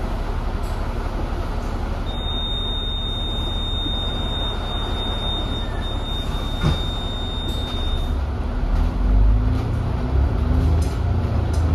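Rain patters steadily outside.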